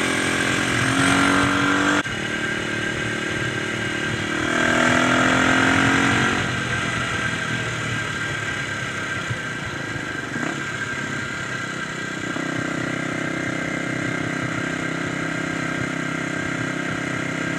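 A motorcycle engine revs and drones steadily up close.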